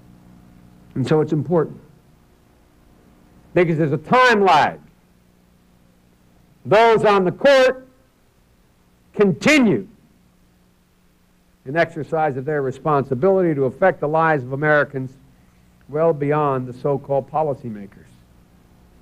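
A man speaks with emphasis into a microphone, pausing between phrases.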